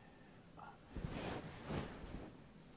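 An elderly man blows softly into his cupped hands.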